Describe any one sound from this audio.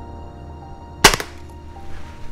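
A pistol fires a single sharp shot that echoes briefly.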